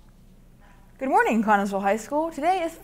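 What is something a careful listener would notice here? A young woman speaks brightly and with animation, close to a microphone.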